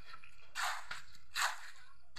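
A man scrapes and shovels gravel by hand.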